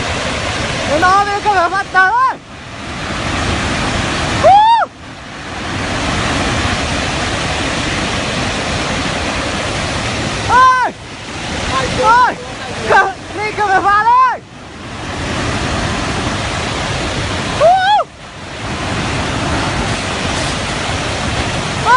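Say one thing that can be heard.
Floodwater roars and rushes loudly.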